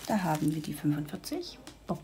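A plastic bag crinkles in a hand.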